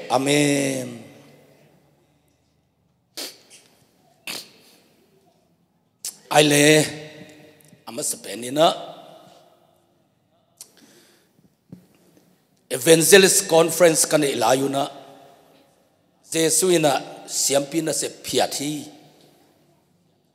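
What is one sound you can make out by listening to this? A man speaks into a microphone, heard through a loudspeaker in an echoing room, in slow bursts with long pauses.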